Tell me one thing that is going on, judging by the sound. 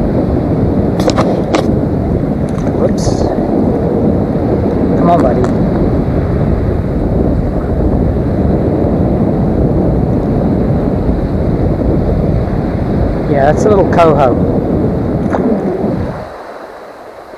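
Wind rumbles loudly across open water, then drops away.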